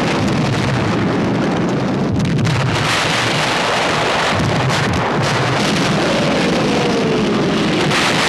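Shell explosions boom and rumble nearby.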